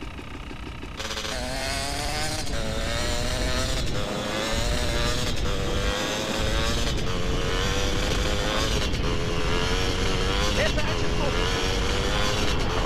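A motorbike engine drones and revs steadily.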